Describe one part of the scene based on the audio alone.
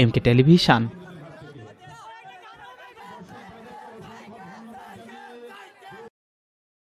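A crowd cheers and chatters.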